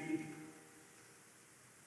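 A choir sings a held chord that fades into a large, echoing hall.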